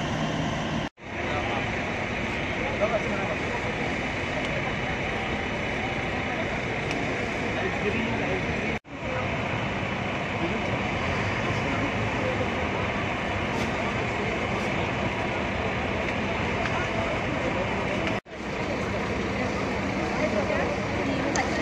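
A crowd of men, women and children chatter close by.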